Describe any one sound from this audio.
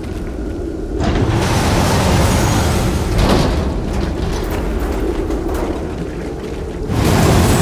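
A heavy metal hatch grinds and scrapes open.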